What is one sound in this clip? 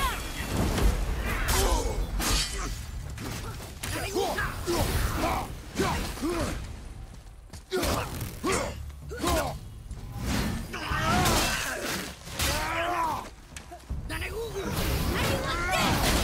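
Bursts of sparks crackle and hiss.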